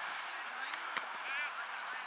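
A soccer ball is kicked with a single thud.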